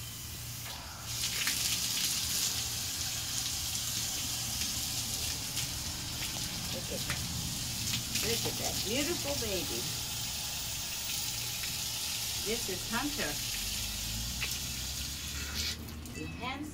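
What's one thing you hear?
Water sprays steadily from a hose onto a dog.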